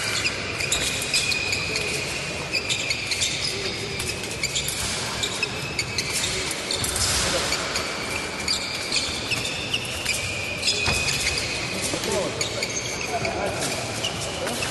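Shoes squeak sharply on the floor.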